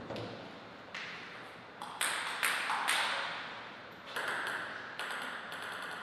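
A table tennis ball clicks sharply against paddles and the table.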